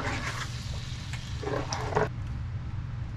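A spoon stirs thick sauce in a pan with a wet squelching sound.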